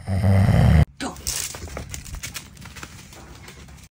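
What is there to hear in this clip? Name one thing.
A dog runs through dry leaves that crunch and rustle underfoot.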